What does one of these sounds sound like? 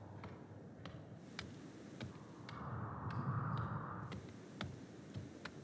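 A young man talks casually, close to a microphone.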